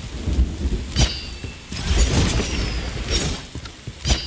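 A blade swings with a sharp whoosh.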